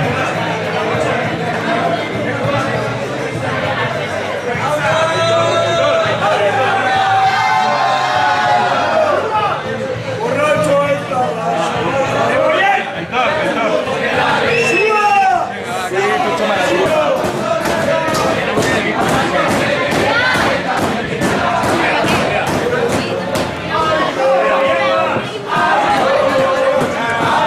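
A crowd of men and women talk and sing loudly nearby, outdoors.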